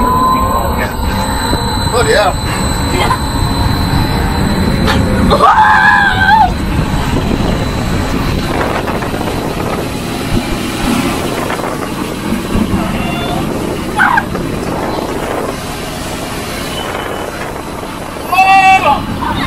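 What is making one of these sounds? A man talks and laughs close by.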